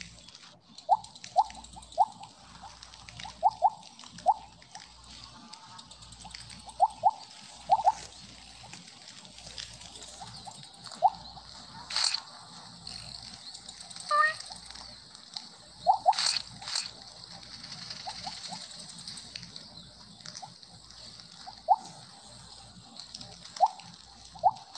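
Short bright electronic blips ring out again and again in a game.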